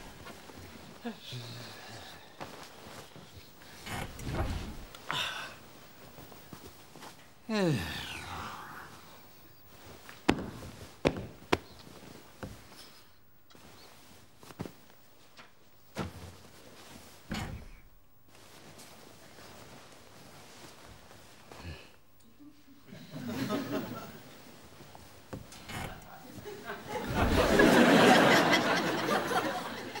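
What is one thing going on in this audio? Bedding rustles.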